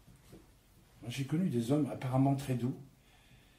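A man speaks calmly and close by.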